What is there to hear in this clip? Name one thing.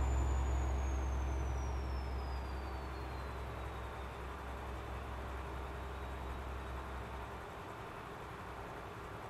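A truck engine drones low and steady as it cruises, slowly growing quieter.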